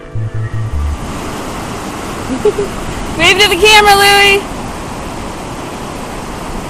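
Rushing river water roars over rocks.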